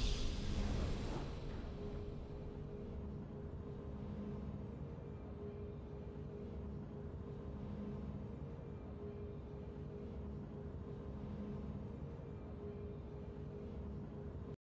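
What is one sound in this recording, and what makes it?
Triumphant game music plays softly.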